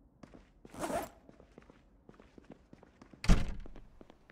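A door opens and shuts with a thud.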